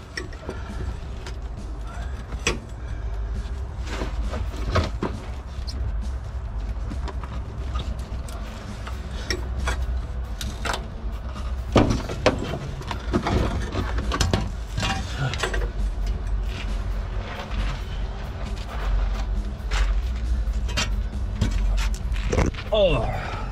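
Metal tools clink and knock against car suspension parts.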